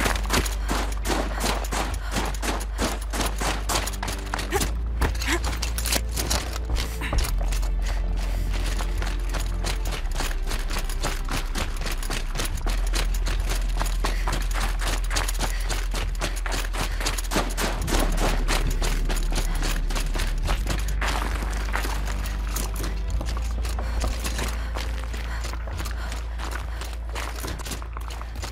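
Footsteps crunch quickly through snow.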